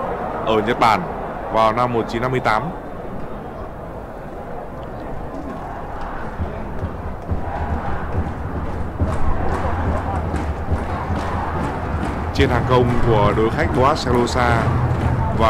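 A large stadium crowd roars steadily, outdoors.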